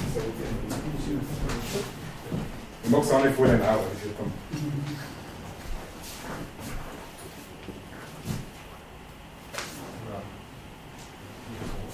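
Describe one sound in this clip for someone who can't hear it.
A man speaks to an audience in a hall.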